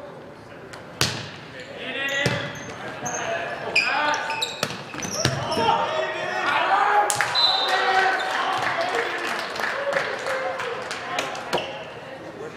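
A volleyball is hit with loud smacks that echo through a large hall.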